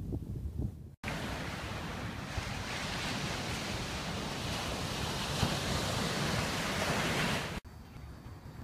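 Ocean waves wash steadily against the shore.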